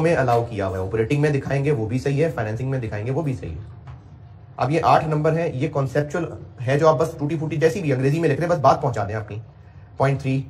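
A man lectures calmly into a microphone.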